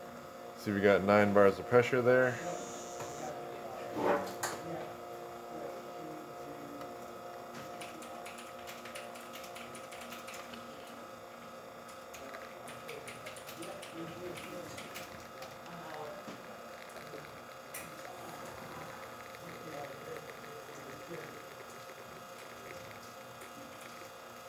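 An espresso machine hums steadily as it pumps.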